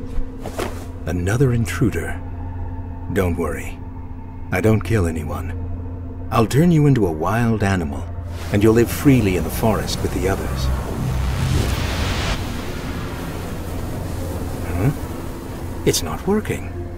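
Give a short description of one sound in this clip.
A man speaks in a deep, menacing voice.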